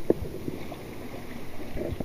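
Water splashes and churns as a wheel turns through it.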